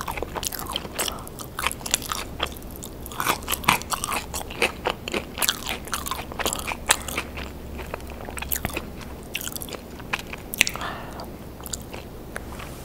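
A young woman chews food loudly and wetly, close to a microphone.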